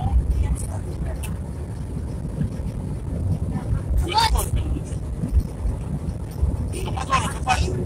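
A car engine rumbles low and steady with road noise from inside the car.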